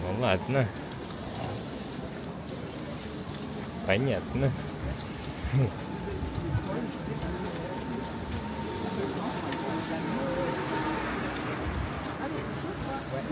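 Footsteps splash on a wet pavement.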